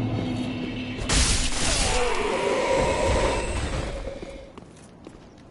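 Swords clash and strike.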